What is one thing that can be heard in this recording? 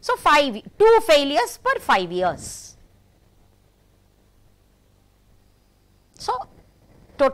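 A middle-aged woman speaks calmly through a microphone, in short phrases with pauses.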